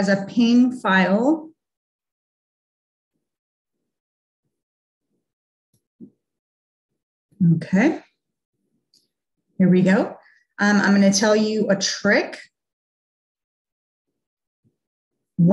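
A woman talks calmly and clearly into a close microphone, in short bursts with pauses.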